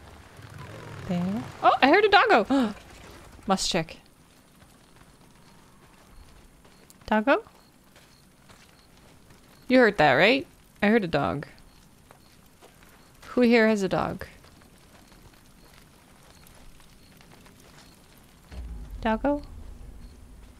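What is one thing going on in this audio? A young woman talks with animation into a nearby microphone, in short bursts.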